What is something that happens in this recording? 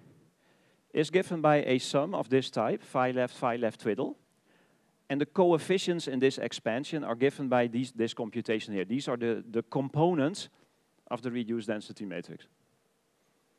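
A man speaks clearly and steadily through a microphone.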